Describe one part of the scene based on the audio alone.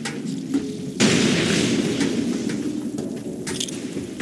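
An energy blast bursts with a roaring rush.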